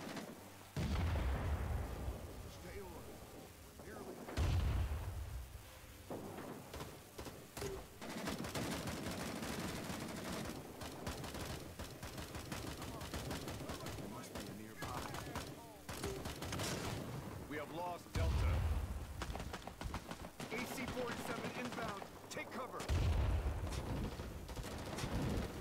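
Explosions boom loudly nearby.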